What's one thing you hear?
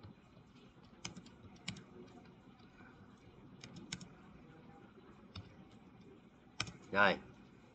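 Keys click on a keyboard in short bursts.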